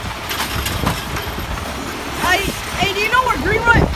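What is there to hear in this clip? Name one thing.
A garbage truck's mechanical arm whirs and clanks as it grabs a bin.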